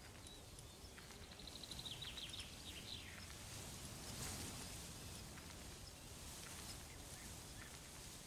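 Soft menu clicks tick as a list scrolls.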